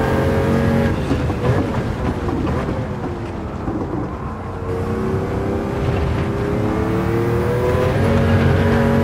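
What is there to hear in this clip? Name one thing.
A race car engine drops in pitch as the car brakes and downshifts, then revs up again.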